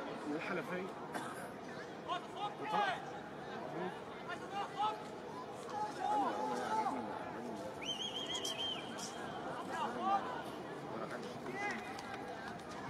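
Several men shout and argue nearby, outdoors.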